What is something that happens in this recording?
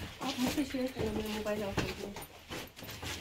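A young woman speaks with animation close by in an echoing room.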